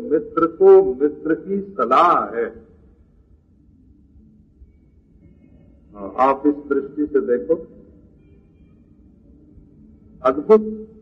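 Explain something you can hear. An elderly man speaks calmly and slowly, close by, in bursts with pauses.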